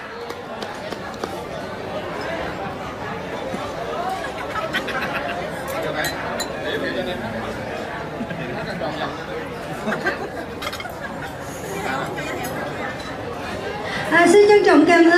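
Many adults chatter at once in a large hall.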